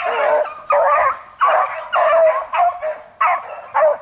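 Several dogs howl and yip together.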